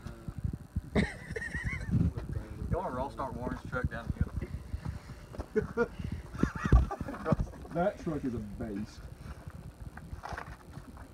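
Young men talk and laugh loudly close by, outdoors.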